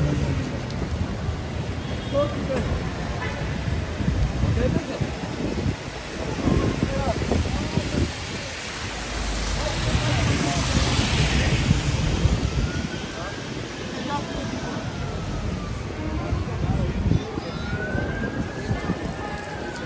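A crowd of people chatters outdoors on a busy street.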